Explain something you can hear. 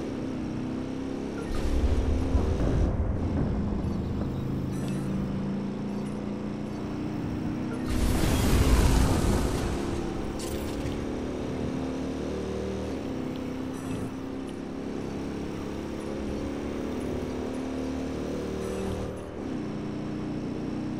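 A motorcycle engine hums steadily as it rides along a road.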